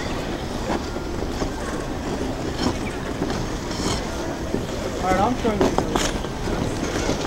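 A crowd of people chatters in the distance outdoors.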